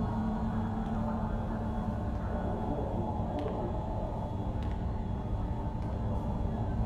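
Soft footsteps tap slowly on a hard floor.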